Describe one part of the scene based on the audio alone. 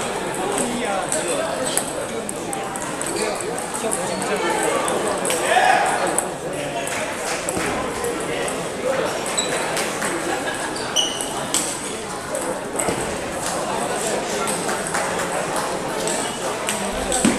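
A crowd of men and women chatters throughout the hall.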